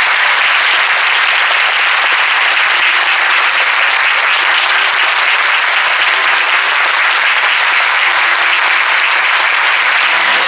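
A crowd of young people cheers and shouts.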